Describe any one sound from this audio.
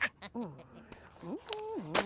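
A marker scribbles on paper.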